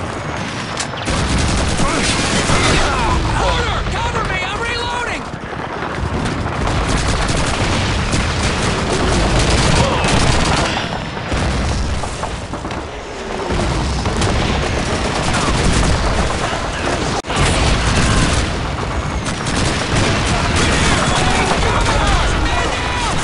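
Explosions boom and rumble all around.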